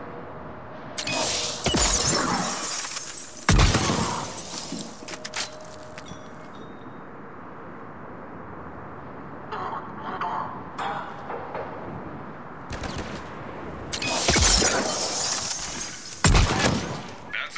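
Gunshots ring out in short, loud bursts.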